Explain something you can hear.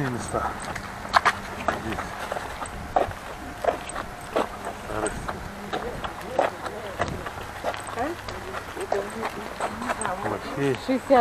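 Footsteps crunch on a rough gravel path.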